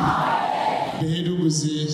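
A man speaks through a microphone with animation.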